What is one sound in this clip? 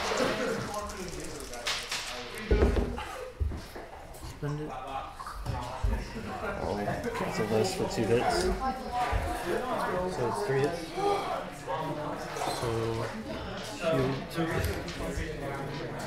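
Two young men talk casually nearby.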